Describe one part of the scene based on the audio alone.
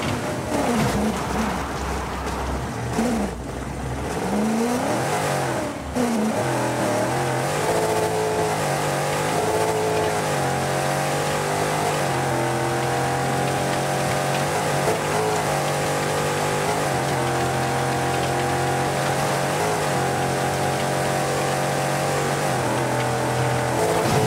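A rally car engine revs hard, rising and falling through gear changes, then holds a steady high drone.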